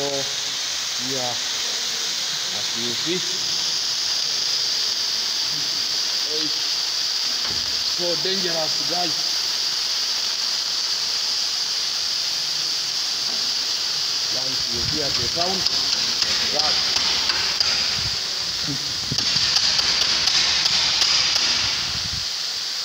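Fire extinguishers hiss loudly and steadily as they discharge.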